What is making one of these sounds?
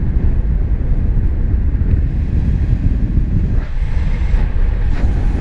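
Strong wind rushes and buffets loudly, as in open air at height.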